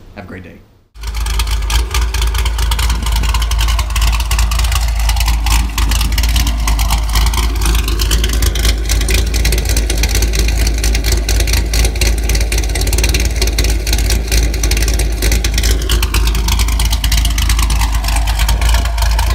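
A sports car's engine idles with a deep, loud rumble from its exhaust.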